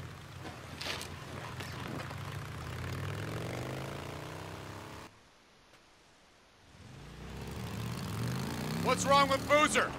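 A motorcycle engine rumbles and revs.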